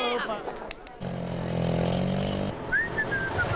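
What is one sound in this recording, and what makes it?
Scooter engines hum steadily nearby.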